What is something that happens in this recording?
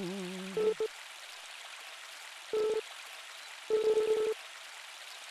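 Short, high chirping blips play in quick bursts.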